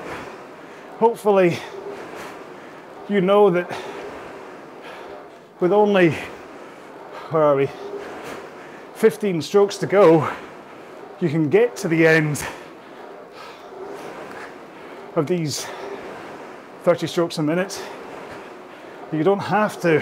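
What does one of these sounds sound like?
A man speaks with animation between breaths.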